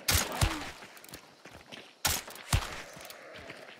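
Rifle shots crack loudly and echo outdoors.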